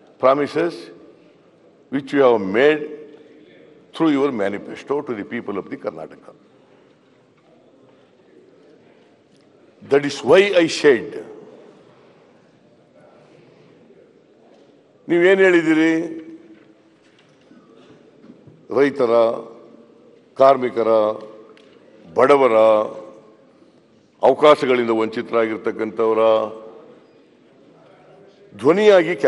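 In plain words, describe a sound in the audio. An elderly man speaks forcefully into a microphone in bursts, with pauses between phrases.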